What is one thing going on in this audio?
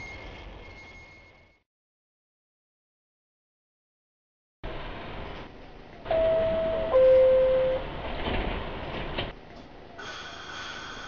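A subway train rumbles along the tracks.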